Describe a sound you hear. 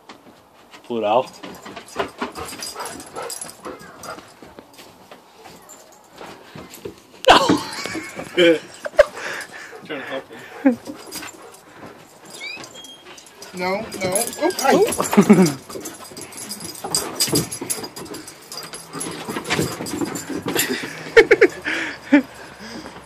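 Two dogs growl playfully as they wrestle.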